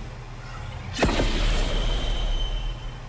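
A magical whooshing game effect bursts and shimmers.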